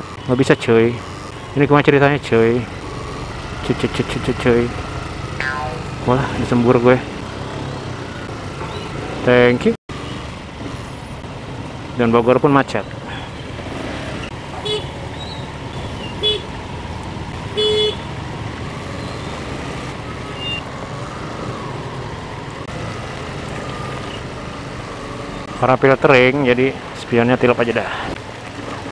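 A motorcycle engine runs steadily up close.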